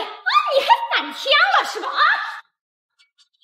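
A young woman cries out in surprise.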